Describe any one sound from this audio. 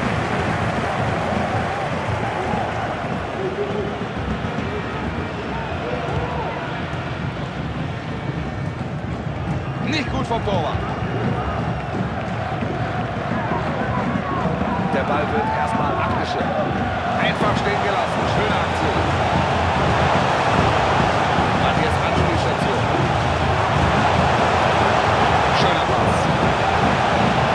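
A large stadium crowd cheers and roars steadily, growing louder toward the end.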